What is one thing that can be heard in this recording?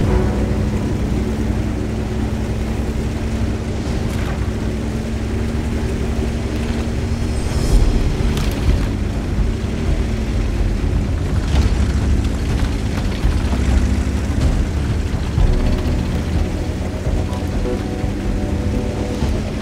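Tank tracks clatter and squeak.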